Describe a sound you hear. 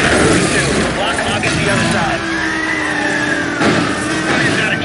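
Cars crash and bang together.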